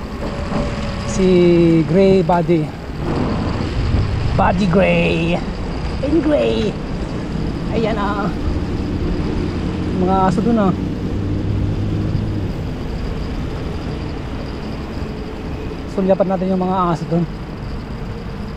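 Bicycle tyres roll steadily on a paved path.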